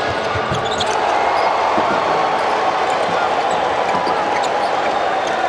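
A crowd cheers loudly in a large echoing arena.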